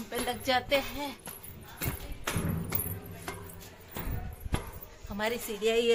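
Footsteps clank on metal stairs.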